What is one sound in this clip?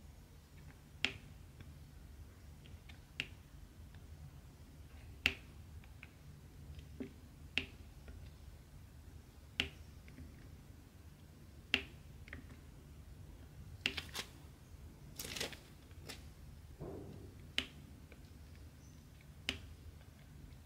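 Small plastic beads click sharply as they are pressed down one at a time.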